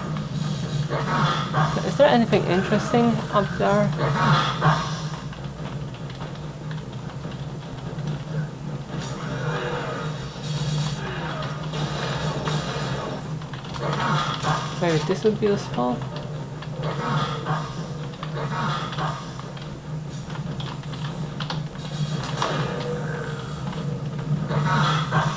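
Video game gunfire and effects play from small loudspeakers.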